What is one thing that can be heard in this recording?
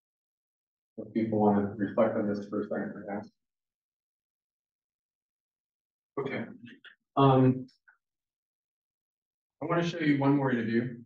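A man speaks calmly to an audience through a microphone, with pauses.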